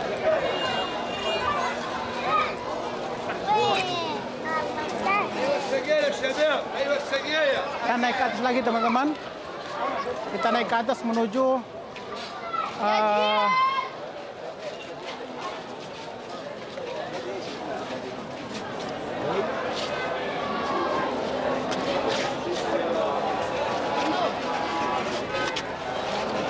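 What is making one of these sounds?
A crowd of men talks loudly all around, close by.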